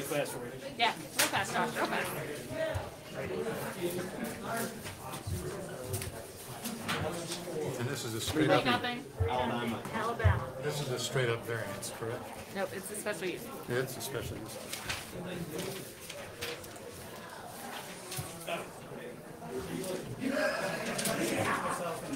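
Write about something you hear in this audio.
Several men and women talk at once in a room with some echo.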